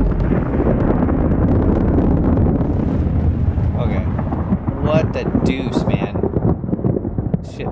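A huge explosion booms and rumbles deeply.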